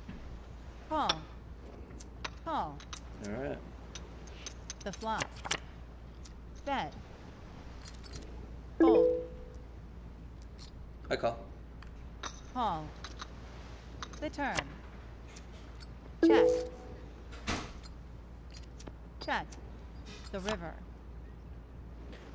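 Poker chips clink against each other.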